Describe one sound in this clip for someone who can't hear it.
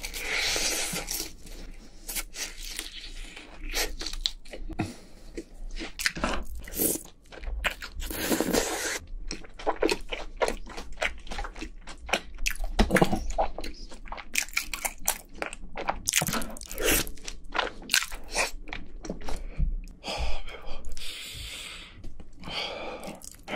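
A young man chews crunchy food loudly and wetly, close to a microphone.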